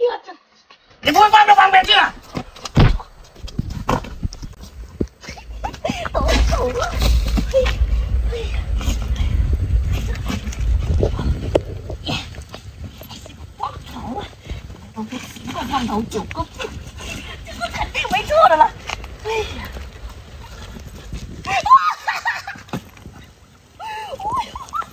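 A young woman speaks with animation nearby.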